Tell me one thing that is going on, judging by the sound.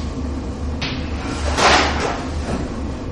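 Chalk scrapes and taps on a blackboard.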